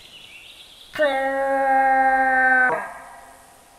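A hunting call blows a loud, steady, buzzing note, then stops.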